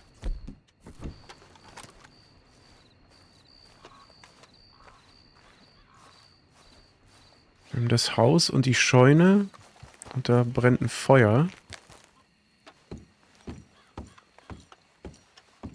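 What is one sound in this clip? Footsteps thud on grass and then on wooden steps.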